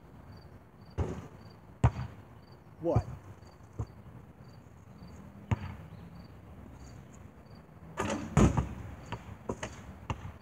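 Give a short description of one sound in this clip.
A basketball bounces on pavement.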